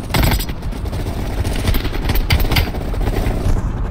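A rifle fires several loud shots in quick succession.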